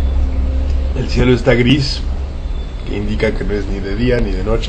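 A middle-aged man speaks calmly, close to a microphone.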